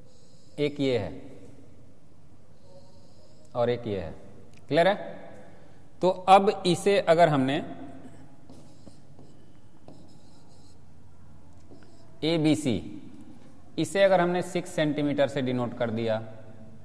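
A man speaks calmly in short phrases, close by.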